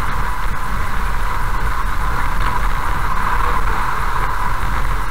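Tyres rumble steadily over a gravel road.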